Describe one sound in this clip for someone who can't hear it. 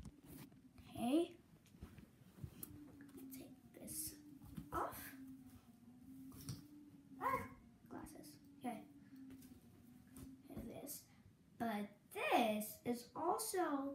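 A young girl talks close by with animation.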